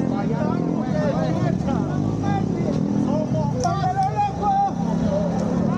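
Young men shout and whistle nearby.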